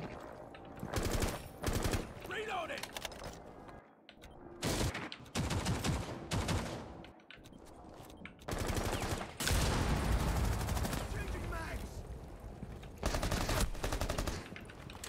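Gunfire bursts loudly in quick rattling volleys.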